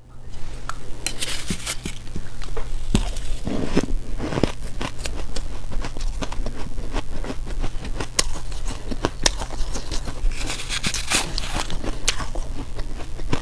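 A young woman chews and crunches food close to a microphone.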